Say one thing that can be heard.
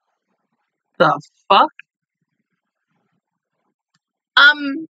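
A young woman exclaims briefly, close to the microphone.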